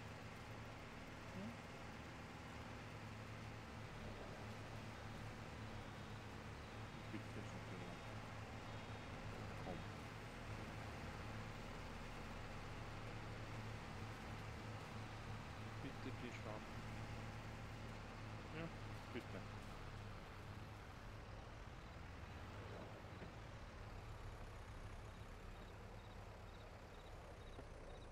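A tractor engine rumbles steadily as it drives along.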